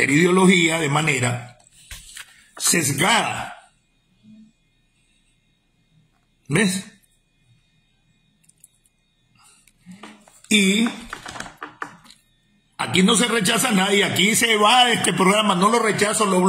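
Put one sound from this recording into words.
A middle-aged man speaks with animation close to a phone microphone, pausing now and then.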